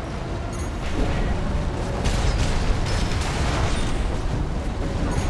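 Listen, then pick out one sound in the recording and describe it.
A mech's thrusters roar steadily.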